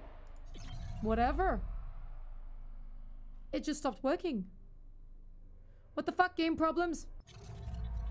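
A young woman speaks animatedly and close into a microphone, her voice rising in pitch.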